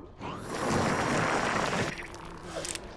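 A stone pillar grinds and rumbles as it rises.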